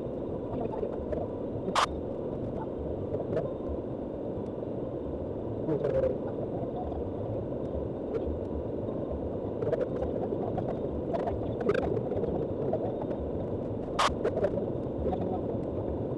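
Tyres crunch and rattle over a gravel road.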